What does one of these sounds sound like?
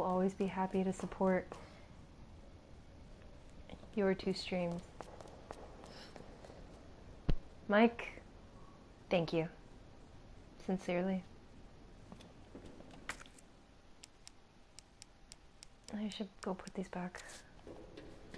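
A young woman speaks in short bursts through a microphone.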